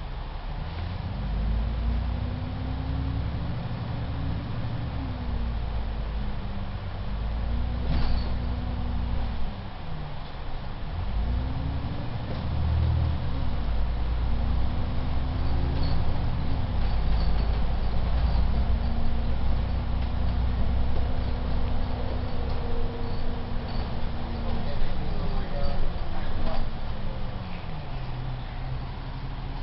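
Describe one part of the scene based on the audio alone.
A bus engine rumbles and whines, rising and falling in pitch as the bus speeds up and shifts gears.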